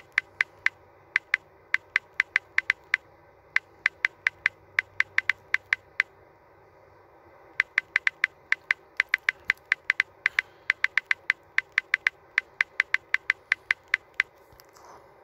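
Keyboard taps click rapidly and evenly as letters are typed.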